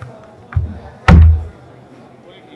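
A heavy thud sounds as a punching machine is struck.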